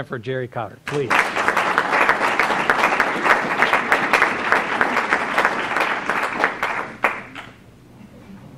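A group of people applauds in a large room.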